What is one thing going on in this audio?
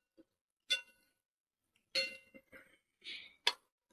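A spoon scrapes and clinks against a metal pan.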